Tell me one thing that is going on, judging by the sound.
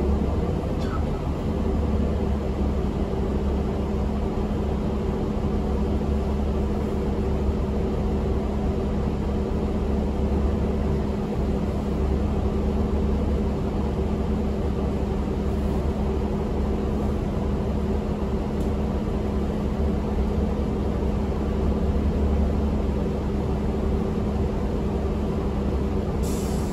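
A bus engine hums and rumbles steadily.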